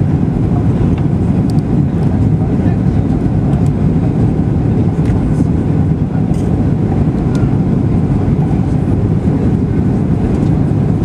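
Jet engines roar steadily from inside an airliner cabin.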